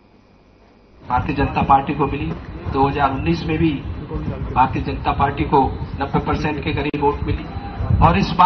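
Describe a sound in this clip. A man speaks loudly into a microphone through a loudspeaker, outdoors.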